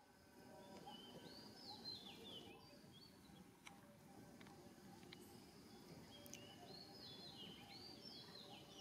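A baby monkey squeaks in short high chirps.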